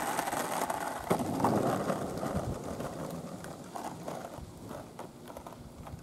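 Skateboard wheels roll on asphalt, rumbling and fading into the distance.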